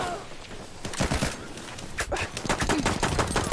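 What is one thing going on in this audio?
Rifle shots crack.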